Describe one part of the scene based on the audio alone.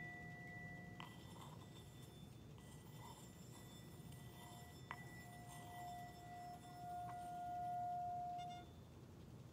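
A wooden stick rubs around the rim of a singing bowl, drawing out a swelling hum.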